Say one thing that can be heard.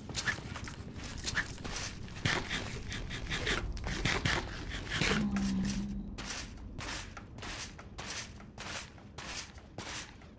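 A pickaxe chips rapidly at blocks in a game, with quick clicking knocks.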